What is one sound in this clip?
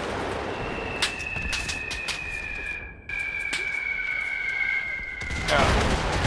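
Gunshots crack in the distance.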